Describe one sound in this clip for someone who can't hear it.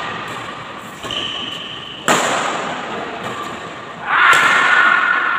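Badminton rackets smack a shuttlecock back and forth in an echoing hall.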